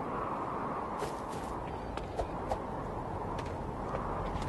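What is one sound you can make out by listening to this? Footsteps tap lightly on a metal walkway.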